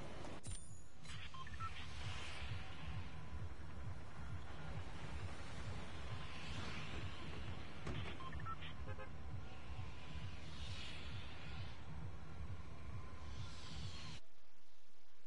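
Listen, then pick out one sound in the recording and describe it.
Wind rushes past in swelling whooshes.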